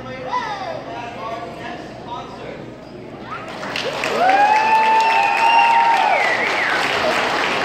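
A large choir of girls sings together, louder and fuller after a few seconds.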